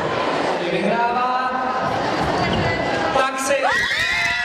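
A young woman shouts excitedly up close.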